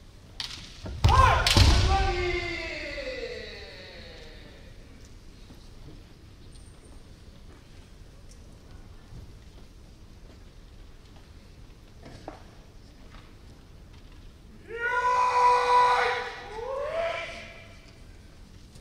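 Men in kendo armour shout loud kiai cries, echoing in a large hall.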